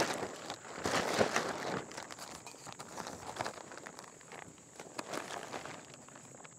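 A plastic tarp rustles and crinkles as it is pulled over a metal frame.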